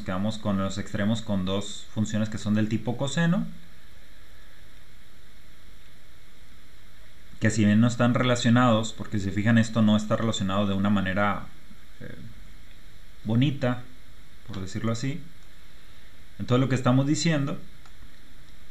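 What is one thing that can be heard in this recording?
A man speaks calmly into a close microphone, pausing between phrases.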